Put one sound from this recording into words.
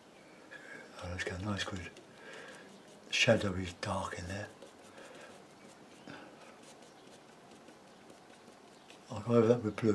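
A paintbrush softly brushes across a canvas.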